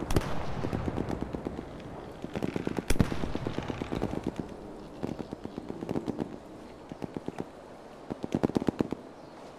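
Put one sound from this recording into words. Footsteps thud quickly on wooden stairs.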